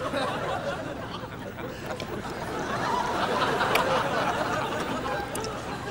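A man blows and sputters with his lips.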